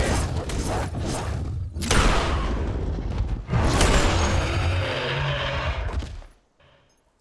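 A creature snarls and screeches during a fight.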